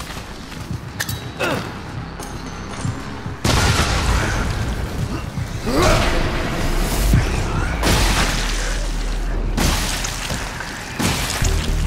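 Monstrous creatures snarl and shriek nearby.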